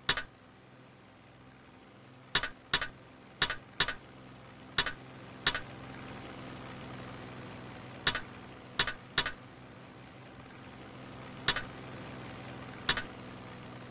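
Short sharp interface clicks sound now and then.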